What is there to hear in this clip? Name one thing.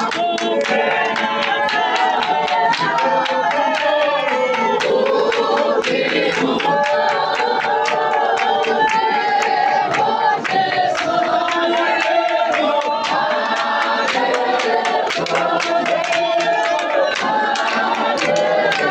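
A crowd of men and women sings loudly together close by.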